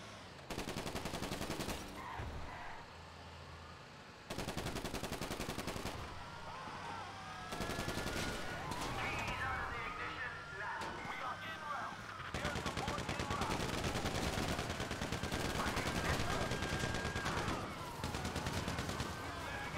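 A heavy truck engine rumbles and revs.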